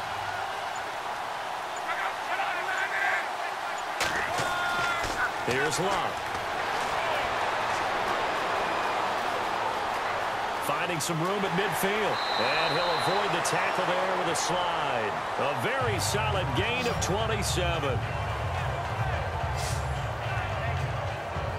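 A large crowd cheers and roars in a big stadium.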